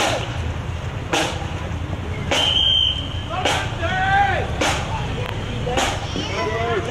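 A marching band's bass drum booms in a steady, regular beat outdoors.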